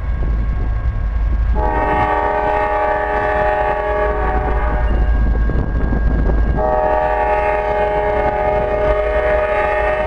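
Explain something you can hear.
A train engine rumbles as the train approaches.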